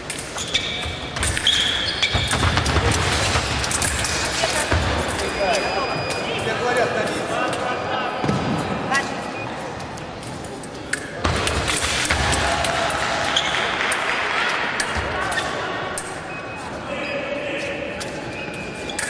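Fencers' shoes squeak and thud on the floor.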